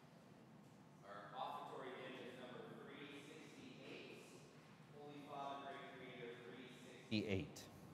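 A man chants through a loudspeaker in a large echoing hall.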